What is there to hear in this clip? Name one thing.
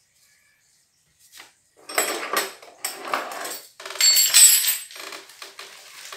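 Metal tools clink against wood.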